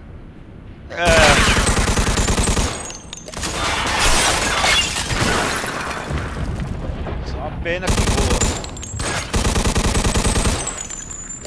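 A submachine gun fires in rapid bursts that echo loudly.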